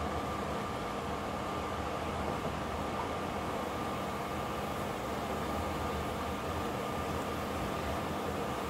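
A spoon stirs through a thick sauce.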